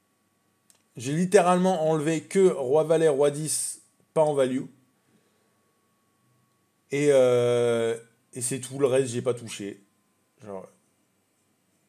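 A man talks calmly and closely into a microphone, in short bursts with pauses.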